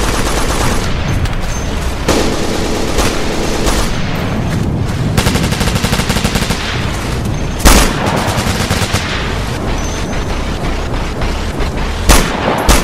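Rapid gunfire crackles throughout.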